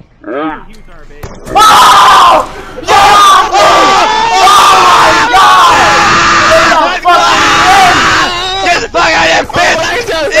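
A young man shouts excitedly into a close microphone.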